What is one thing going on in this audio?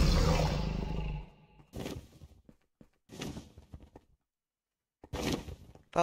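A dragon roars in the distance.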